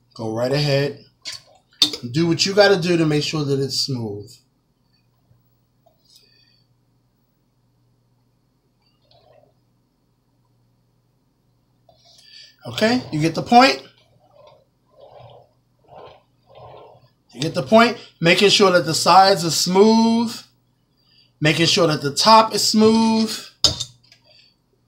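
A man talks calmly and close by.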